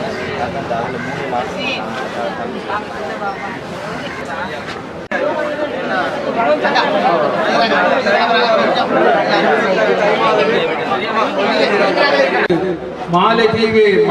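Women wail and sob loudly in grief nearby.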